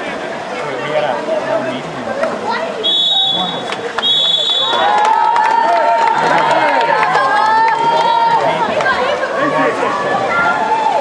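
A crowd of spectators shouts and cheers nearby, outdoors.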